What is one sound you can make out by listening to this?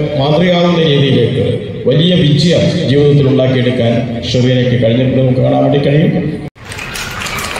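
An elderly man speaks loudly and at length into a microphone through loudspeakers.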